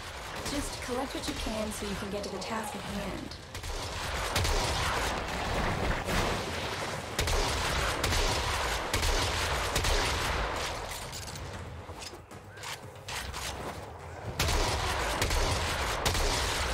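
Gunfire and energy blasts crackle in quick bursts.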